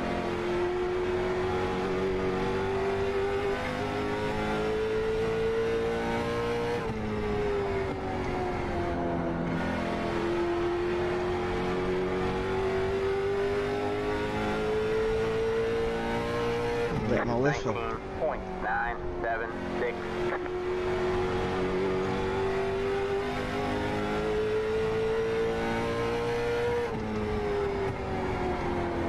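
A racing car engine drones steadily, rising and falling in pitch with each lap.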